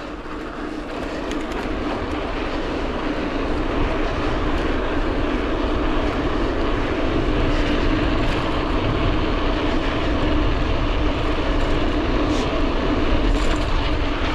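Bicycle tyres hum on a paved road.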